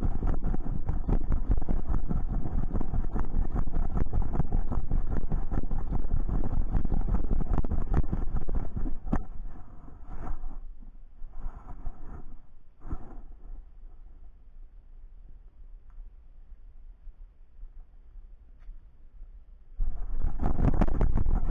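Wind rumbles loudly and roughly against a microphone.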